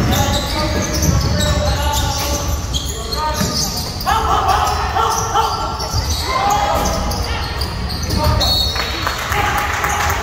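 Sneakers squeak sharply on a hard court floor in a large echoing gym.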